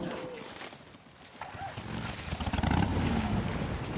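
A motorcycle engine starts and revs up.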